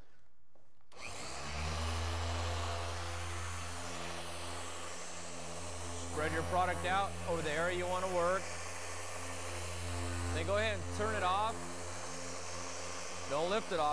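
A polishing machine hums steadily.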